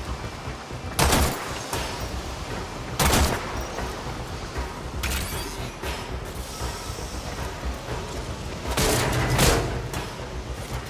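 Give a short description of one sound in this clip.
A blade strikes with a sharp whoosh.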